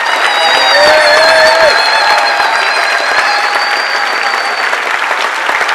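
A band plays lively folk music that ends on a held note.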